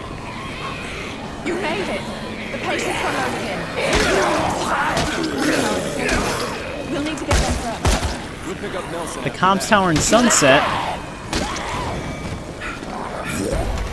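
Zombies groan and moan close by.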